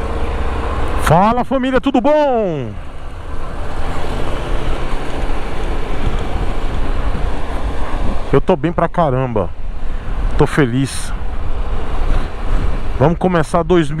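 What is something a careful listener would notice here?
A motorcycle engine revs up and down sharply a few times.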